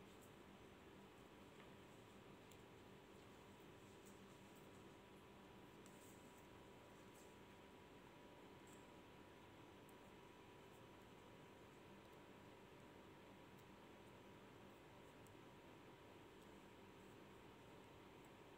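A metal crochet hook ticks faintly as it pulls thread.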